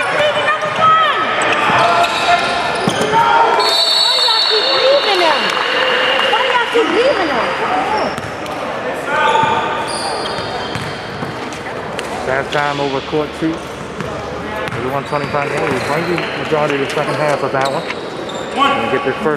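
Young men call out and shout to each other across the gym.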